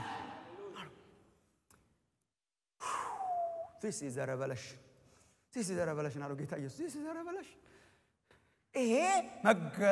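A man speaks earnestly into a microphone, in a large echoing hall.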